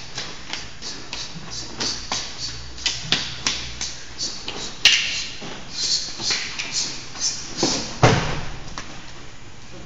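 Wooden sticks clack together in quick, sharp strikes.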